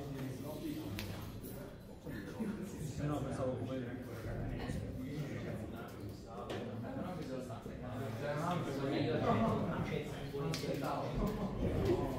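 Playing cards tap and slide on a soft mat.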